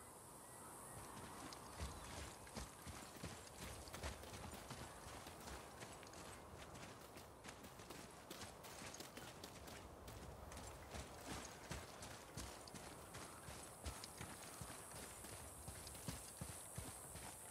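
Heavy footsteps tread steadily over stony ground and grass.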